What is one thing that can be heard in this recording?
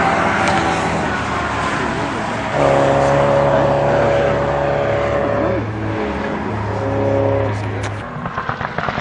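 A rally car engine roars at high revs as the car speeds past and away.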